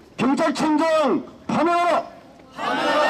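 A man shouts a slogan outdoors.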